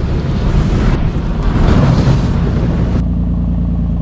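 Water sprays and hisses onto a vehicle.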